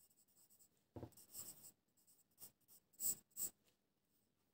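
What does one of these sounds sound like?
A pen scratches across paper in short strokes.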